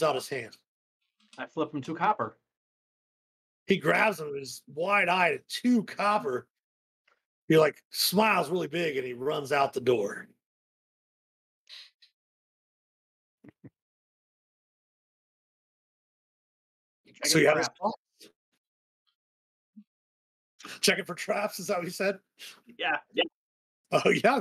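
Several men talk with animation over an online call.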